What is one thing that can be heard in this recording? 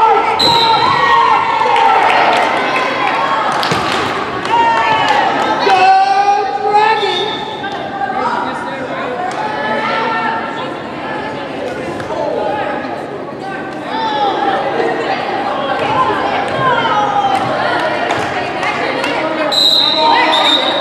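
Young women call out and chatter in a large echoing gym.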